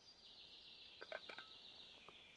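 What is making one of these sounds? A metal flask clinks in a man's hands.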